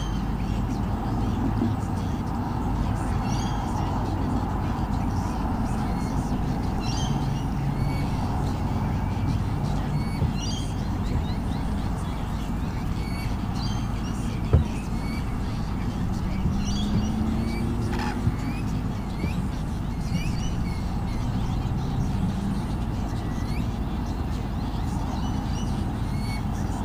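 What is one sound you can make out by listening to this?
Small birds chirp and twitter repeatedly.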